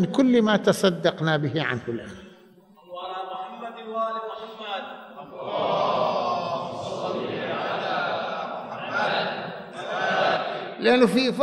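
An elderly man speaks forcefully into a microphone in a large echoing hall.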